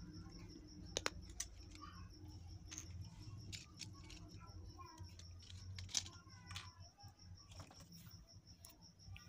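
Small objects tap lightly on a wooden table.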